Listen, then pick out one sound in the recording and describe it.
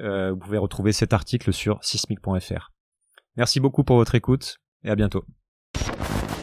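A young man speaks calmly into a microphone up close.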